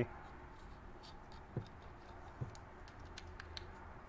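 Small plastic parts click and tap together as they are pressed into place.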